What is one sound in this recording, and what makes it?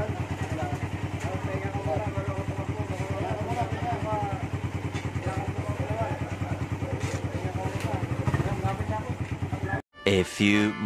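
A motorcycle engine idles with a steady, fast putter.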